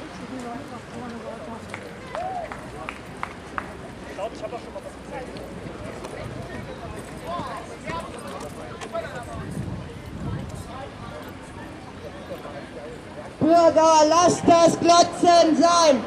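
Footsteps shuffle on pavement as a crowd walks.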